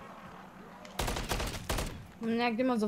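A rifle fires in short rapid bursts.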